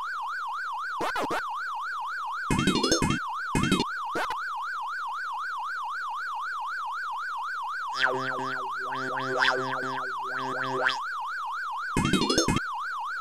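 Short electronic blips sound now and then.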